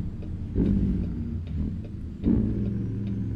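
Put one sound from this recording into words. A truck's engine revs up as gears change.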